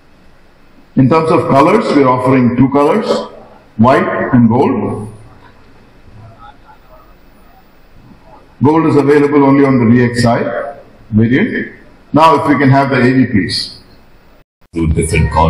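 A middle-aged man speaks through a microphone in a large hall, presenting with animation.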